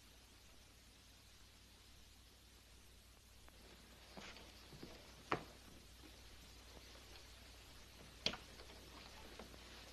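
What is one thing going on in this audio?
Footsteps sound on a hard floor.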